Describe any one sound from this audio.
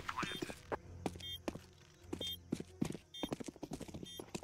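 A bomb beeps at steady intervals.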